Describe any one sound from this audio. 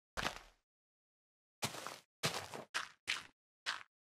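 A solid block thuds down into place.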